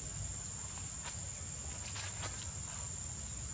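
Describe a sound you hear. Dry leaves rustle softly under a young monkey's feet.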